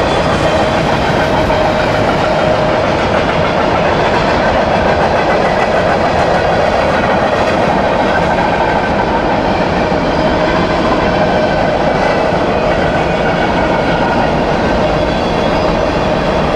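A freight train rumbles and clatters steadily along the tracks.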